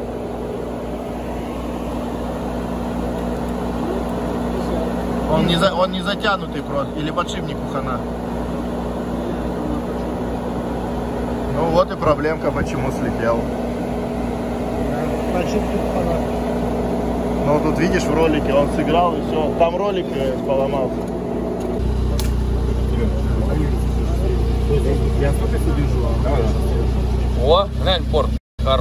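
Metal parts knock and scrape as hands work on an engine.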